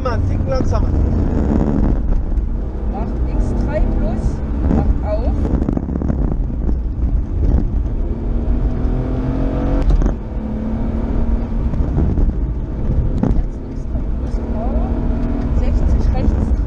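A car engine hums and revs while driving.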